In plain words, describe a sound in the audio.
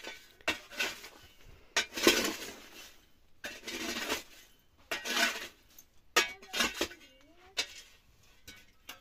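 A pickaxe strikes and scrapes hard ground.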